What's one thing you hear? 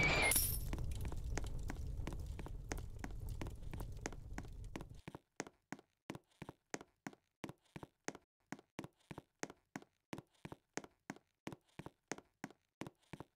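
Footsteps patter quickly and evenly as a game character runs.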